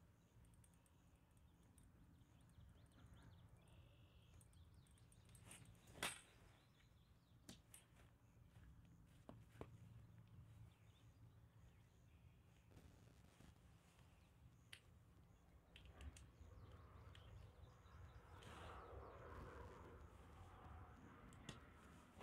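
Outdoors, a light wind blows.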